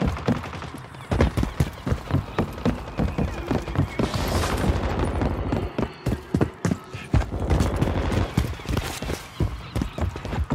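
Quick footsteps thud on hard ground and wooden boards.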